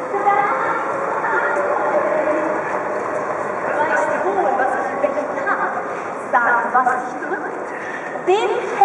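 A crowd of people chatters outdoors.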